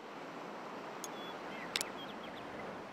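Short electronic blips sound.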